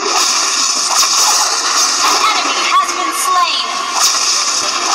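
Sharp game hit sounds clash repeatedly.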